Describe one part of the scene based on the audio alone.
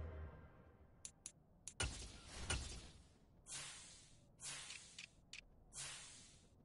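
Short menu whooshes and clicks sound as options change.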